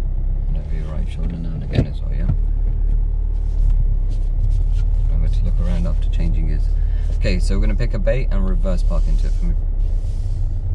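A young man speaks calmly inside a car, close by.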